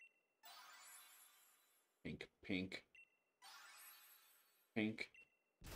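A chiming blip sound rattles quickly.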